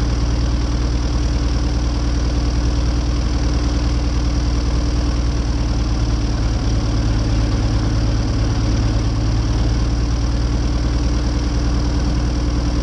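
A small propeller plane's engine drones loudly and steadily up close.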